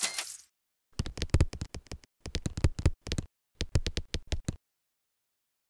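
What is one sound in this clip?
Short popping game sounds come in quick bursts as pancakes stack up.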